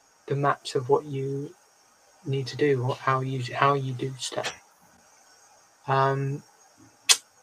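A man speaks with animation into a close microphone over an online call.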